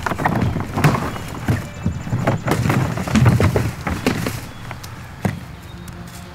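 A man rummages through a plastic trash bin, rustling and thumping.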